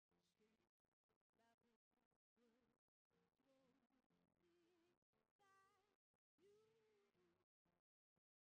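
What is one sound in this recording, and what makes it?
A harmonica wails and bends notes through a microphone.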